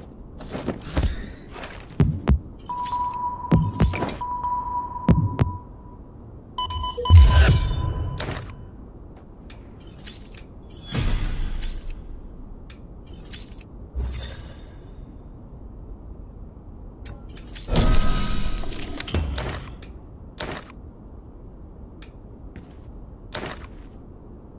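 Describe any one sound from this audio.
Short game interface sounds chime and click as items are picked up.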